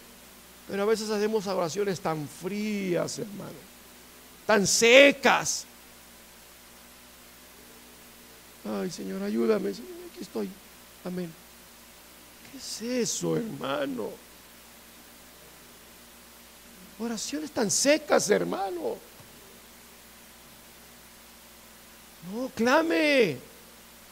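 A middle-aged man speaks with emphasis in short bursts with pauses.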